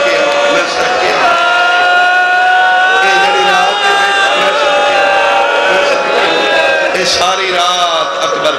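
A man sings a long drawn-out lament loudly through a microphone, with echo.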